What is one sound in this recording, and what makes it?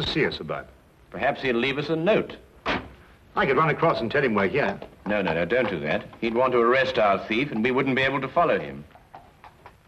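A man speaks loudly.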